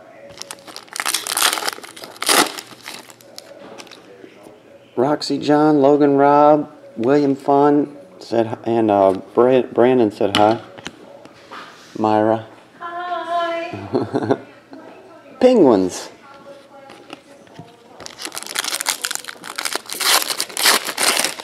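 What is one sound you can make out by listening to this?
A plastic wrapper crinkles and rustles as it is torn open.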